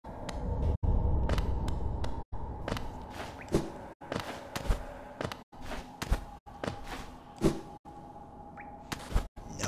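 A small game character lands with soft thuds.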